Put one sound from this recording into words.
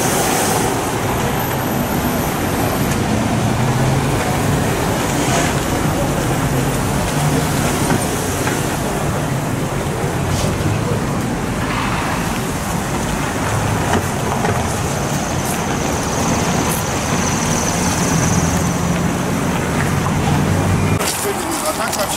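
Car traffic drives past on a wet street.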